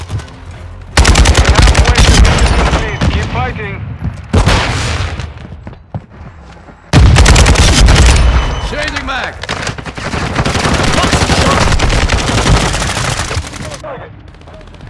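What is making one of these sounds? An automatic rifle fires in rapid bursts, close by.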